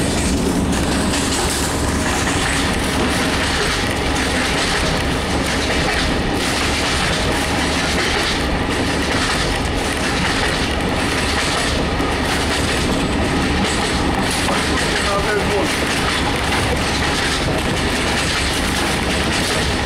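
A train rumbles and rattles steadily along the tracks, heard from inside a carriage.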